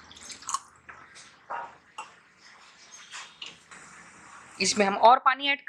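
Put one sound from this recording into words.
A spatula stirs thick sauce in a pan with soft wet scrapes.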